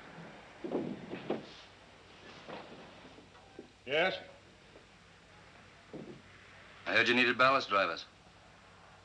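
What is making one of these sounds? A young man speaks with animation nearby.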